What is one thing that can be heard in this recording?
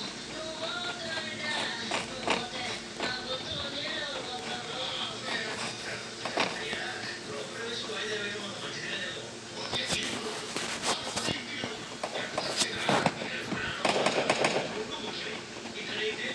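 Footsteps run quickly over hard ground and wooden stairs.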